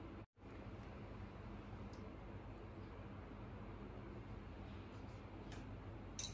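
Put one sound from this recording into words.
Small objects are set down softly on a hard floor.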